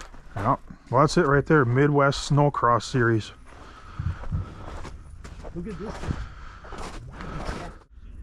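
Footsteps crunch on snowy, muddy ground.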